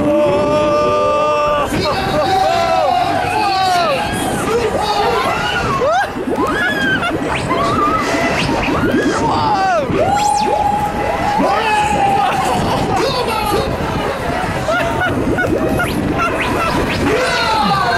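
Loud music blares from loudspeakers.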